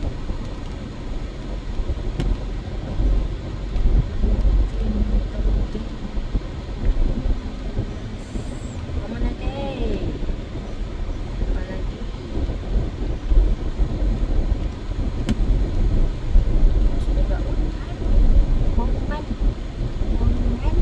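Tyres roll over a wet road with a low rumble.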